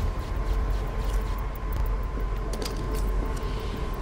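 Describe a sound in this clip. Steam hisses from a pipe.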